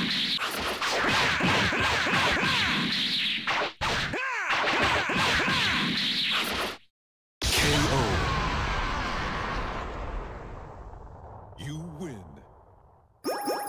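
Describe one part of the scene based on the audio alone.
Punches, whooshes and blasts crash in a fast fight.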